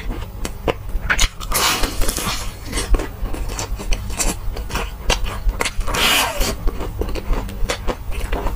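A young man chews and smacks his lips wetly up close.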